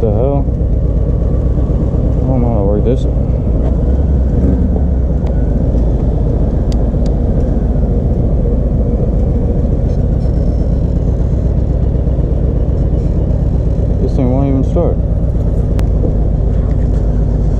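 A motorcycle engine idles with a steady, deep rumble.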